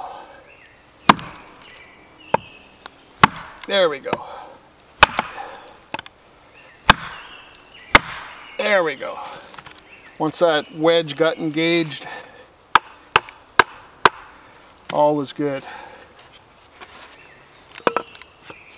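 An axe strikes a block of wood with sharp knocks.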